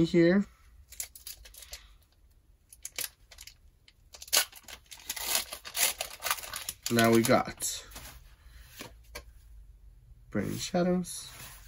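Trading cards rustle and flick as hands shuffle them.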